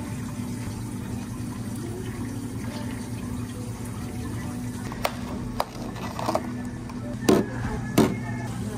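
A coffee machine hums steadily.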